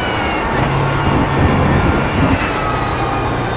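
Tyres rumble over kerbs.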